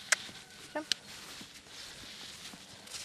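A horse's hooves thud softly on sand.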